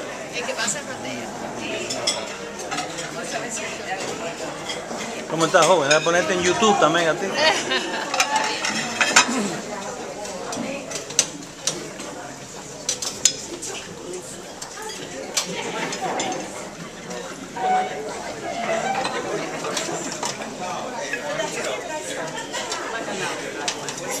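A crowd chatters in a large room.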